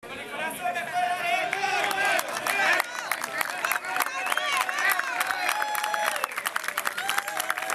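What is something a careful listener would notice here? A crowd of children and adults shouts and cheers close by.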